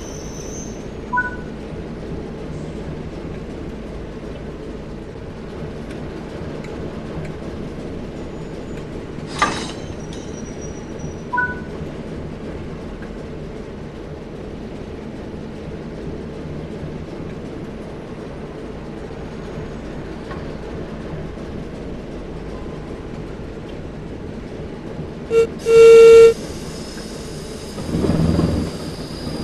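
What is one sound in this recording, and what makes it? A diesel locomotive engine idles with a steady low rumble.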